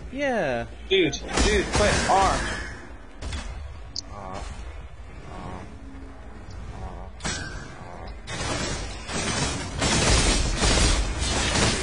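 Magic spells crackle and whoosh.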